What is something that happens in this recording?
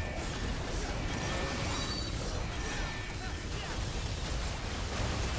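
Magic spell effects crackle and boom in a battle.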